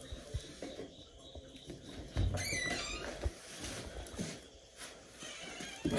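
A metal pot lid clinks.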